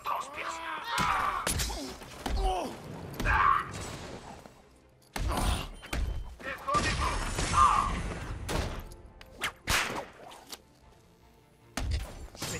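Heavy punches and kicks land with dull thuds.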